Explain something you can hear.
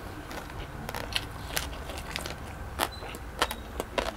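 Crisp lettuce crunches as a man bites into it.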